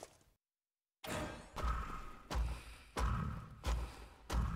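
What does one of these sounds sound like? Upbeat electronic music plays with a thumping beat.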